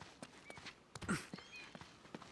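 A body thuds onto the ground in a roll.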